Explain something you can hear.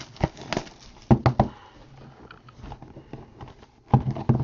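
A cardboard box taps and scrapes as hands handle it.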